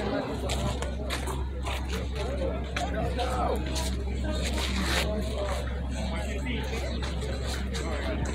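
A rubber ball slaps against a wall.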